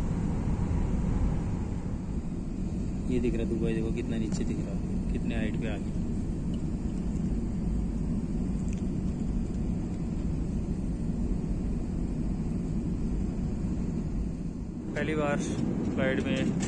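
Jet engines roar steadily inside an airliner cabin.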